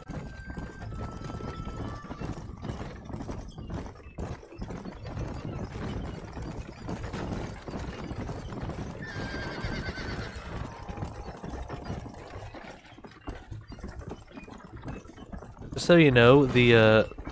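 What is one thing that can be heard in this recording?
Horse hooves clop on a dirt trail.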